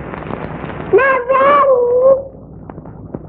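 A young girl cries out in a high voice.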